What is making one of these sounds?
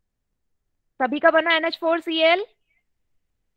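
A young woman speaks calmly through a headset microphone over an online call.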